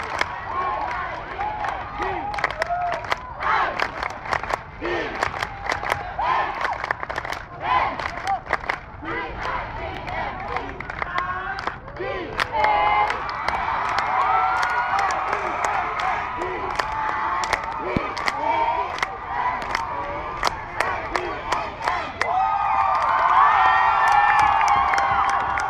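Hands clap sharply in the crowd.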